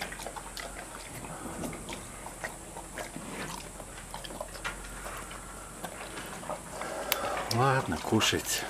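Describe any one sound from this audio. A bear eats with wet, crunching chews.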